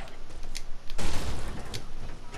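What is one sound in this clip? A container bursts open with a loud clatter.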